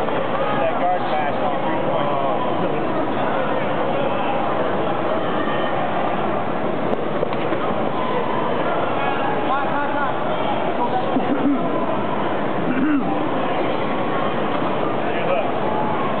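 A crowd of men and women talk and call out in a large echoing hall.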